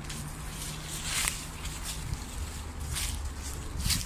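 Leaves and branches rustle as someone pushes through dense brush.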